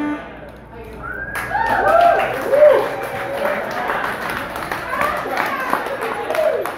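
Electronic music plays with warbling, sliding tones.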